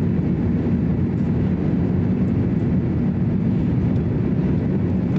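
A jet engine roars steadily as an airliner cruises, heard from inside the cabin.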